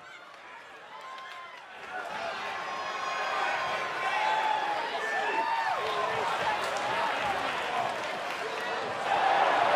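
A large crowd cheers in a big echoing arena.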